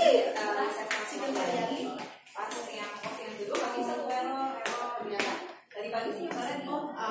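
Several women talk and chatter nearby in an echoing room.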